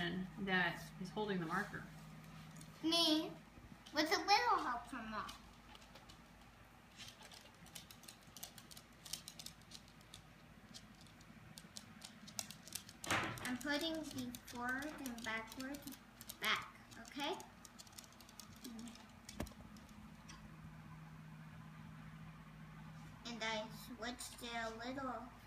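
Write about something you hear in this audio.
A young girl talks nearby in short phrases.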